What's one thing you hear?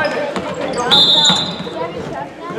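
A referee's whistle blows once, short and shrill.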